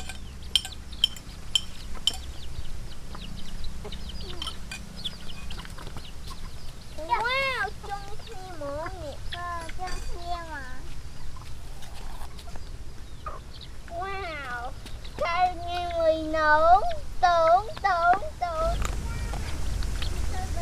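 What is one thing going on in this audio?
Chickens cluck and peck at the ground.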